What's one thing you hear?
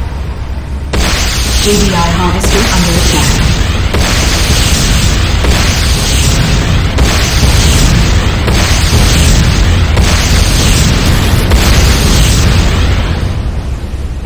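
Cannon fire booms in repeated bursts.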